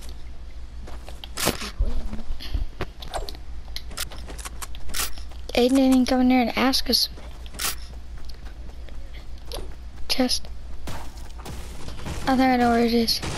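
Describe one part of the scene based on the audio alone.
Footsteps patter quickly on hard pavement.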